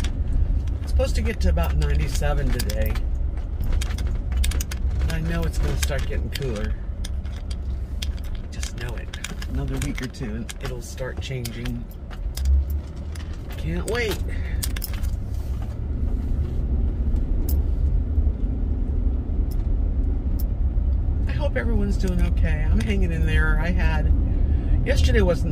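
A car engine rumbles steadily from inside the car.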